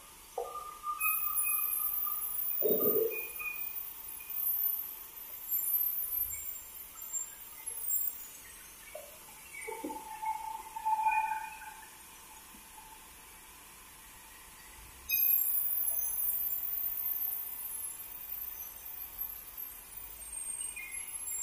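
A band saw screeches as it cuts through timber.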